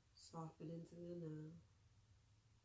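A young woman chants softly close by.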